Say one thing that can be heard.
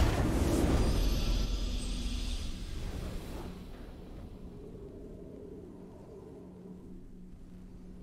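A triumphant fanfare plays and slowly fades.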